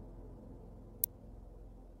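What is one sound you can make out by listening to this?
A short click sounds.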